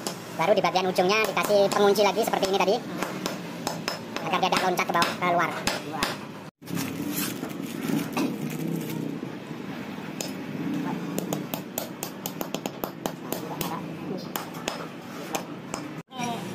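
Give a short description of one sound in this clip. A hammer taps on metal with sharp knocks.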